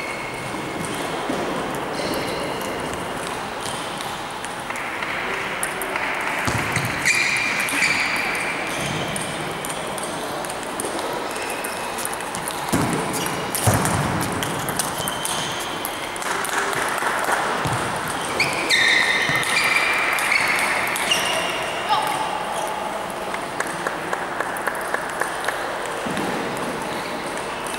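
A ping-pong ball clicks on paddles and the table in a large echoing hall.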